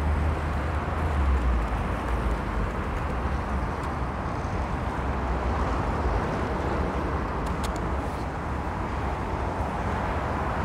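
Wind blows steadily across an open space, rumbling against the microphone.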